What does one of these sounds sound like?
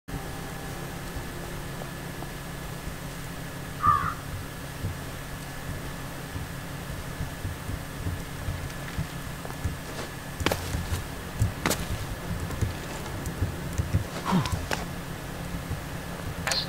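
Footsteps thud softly on grass and dirt.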